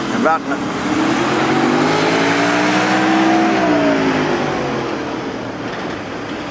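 A truck drives past close by, its engine rising and then falling away.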